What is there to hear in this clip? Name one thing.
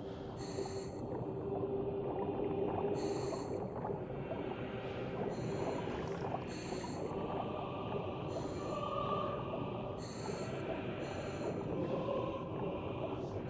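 Water gurgles and bubbles around a swimming diver.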